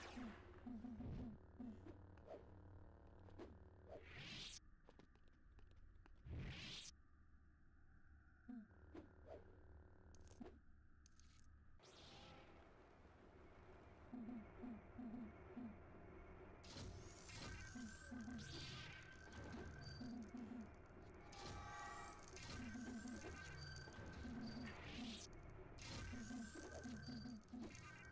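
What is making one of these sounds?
Lightsabers hum and clash in a video game.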